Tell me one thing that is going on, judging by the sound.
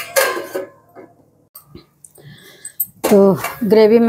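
A metal lid clanks down onto a pan.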